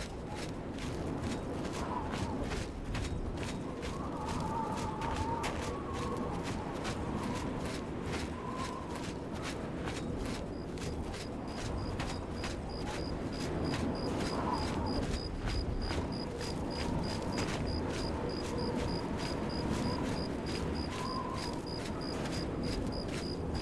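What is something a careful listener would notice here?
Footsteps tread steadily and quickly over rough ground.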